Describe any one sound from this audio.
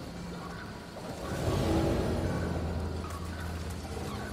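A magical shimmering whoosh swells up and slowly fades.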